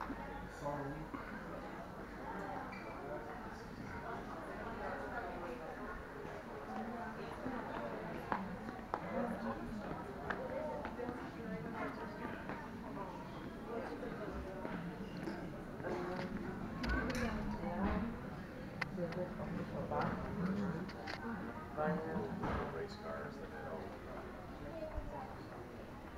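Many adult visitors chatter at a distance in a large echoing hall.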